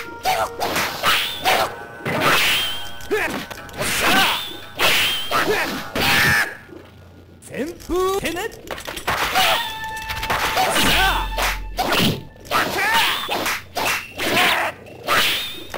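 Swords clash and slash with sharp bursts of game sound effects.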